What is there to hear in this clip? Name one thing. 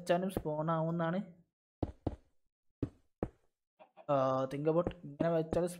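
Blocks are placed with short soft thuds.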